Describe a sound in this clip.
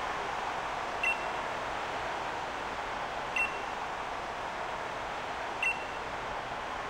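A short electronic chime sounds three times.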